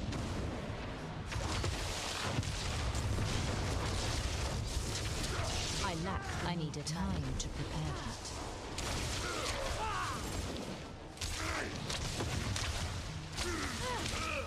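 Game combat effects crackle and blast.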